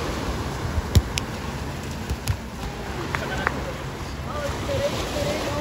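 A football thuds against bare feet.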